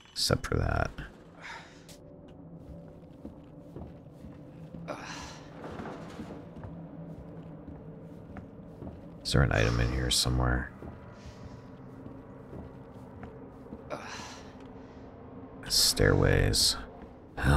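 Footsteps tread slowly across a hard floor.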